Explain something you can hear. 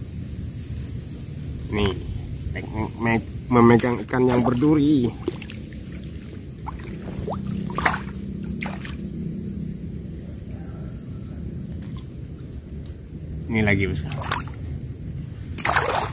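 A fish flaps in a wire trap.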